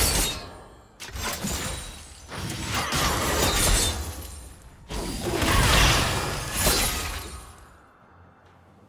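Game spell effects whoosh and burst in quick bursts.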